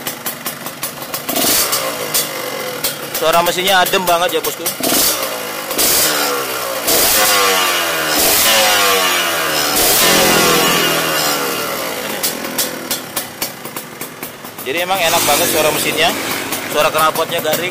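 A motorcycle engine idles close by and revs up and down repeatedly.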